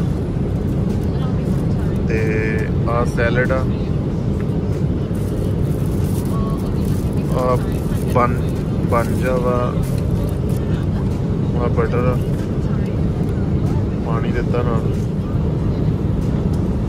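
The engines of an airliner drone steadily inside the cabin.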